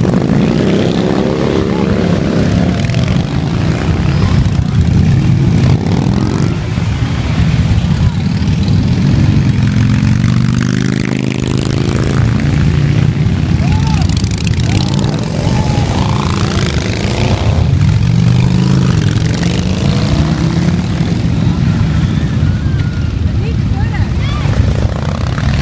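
Motorcycle engines rumble loudly as bikes ride past one after another.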